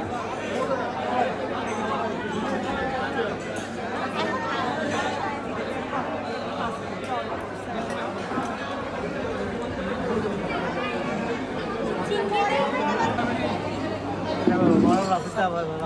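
Plates and cutlery clink on tables.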